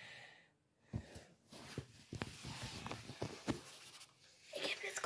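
Hands rub and knock against the microphone.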